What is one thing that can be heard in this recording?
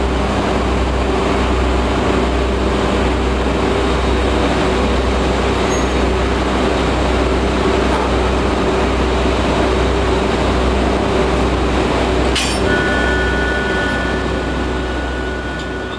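A locomotive engine hums steadily close by.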